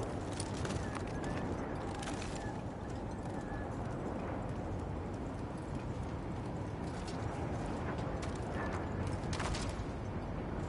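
Footsteps clang on a metal ladder.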